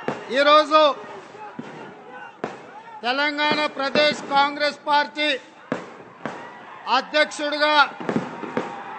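A man speaks forcefully into a microphone through loudspeakers, in bursts with pauses.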